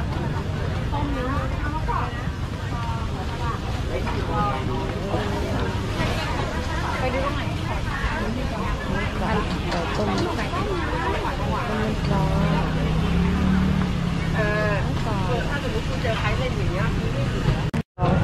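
A crowd of shoppers chatters outdoors.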